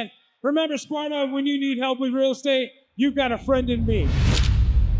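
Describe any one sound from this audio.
A man speaks loudly into a microphone over a loudspeaker, announcing with animation.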